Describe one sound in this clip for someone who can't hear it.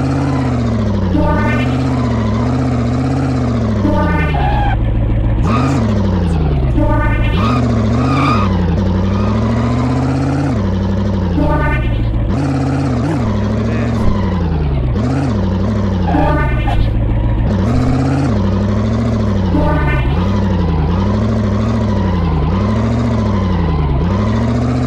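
An engine revs up and down steadily.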